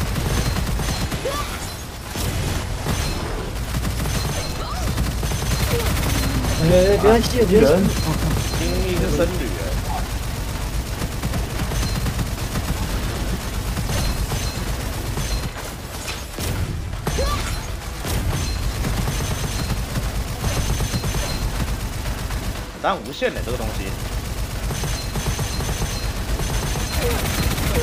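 Energy weapons fire in rapid bursts with explosive bangs.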